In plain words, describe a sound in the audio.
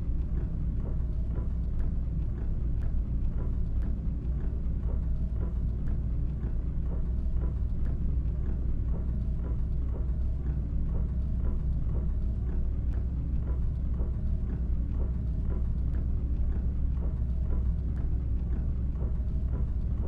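A bus engine hums with a steady low rumble.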